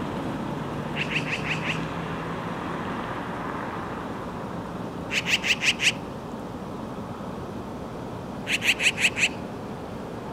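A magpie chatters in short, rapid bursts of harsh calls.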